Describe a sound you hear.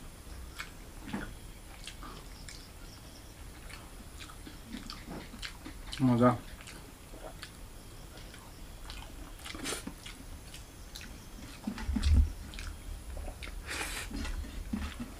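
Fingers mix rice and curry on a metal plate.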